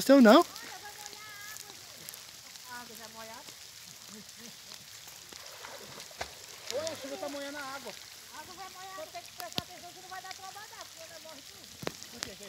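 Rain patters on the surface of the water.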